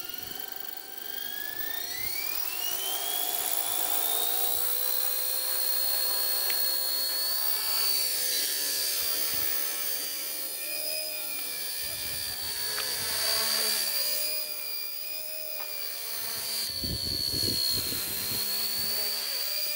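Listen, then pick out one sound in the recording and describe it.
A small electric motor whirs at a high pitch.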